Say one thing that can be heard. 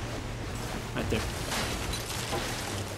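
Water splashes loudly as something large breaks the surface.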